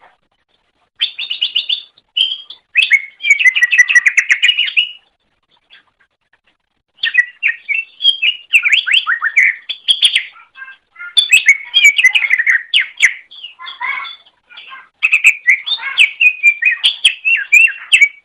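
A small songbird sings a fast, varied chirping song in bursts.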